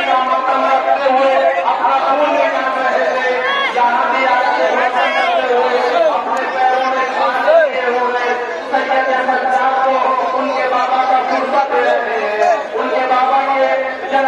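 A crowd of men chants loudly outdoors.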